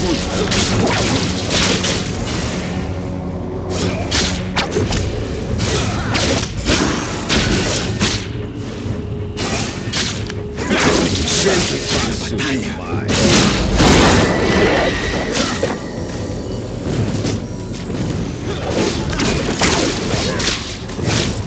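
Game spell effects burst and crackle in quick succession.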